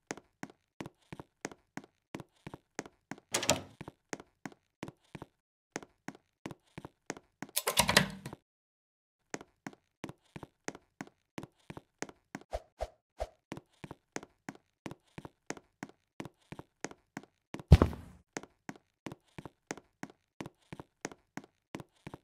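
Footsteps tap quickly and steadily across a wooden floor.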